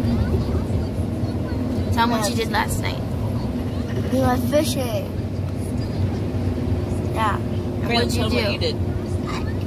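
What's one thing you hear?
A girl speaks brightly close by.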